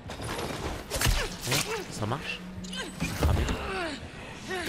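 A knife slashes and thuds into a body.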